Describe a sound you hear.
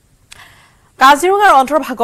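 A young woman speaks clearly into a microphone.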